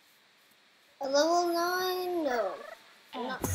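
A small creature gives a warbling, chirping cry.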